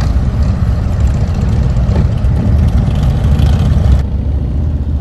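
Harley-Davidson V-twin touring motorcycles rumble past on a road.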